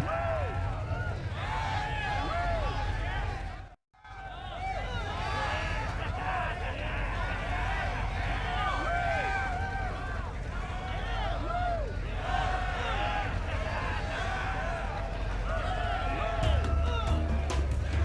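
A crowd of men cheers and whistles loudly.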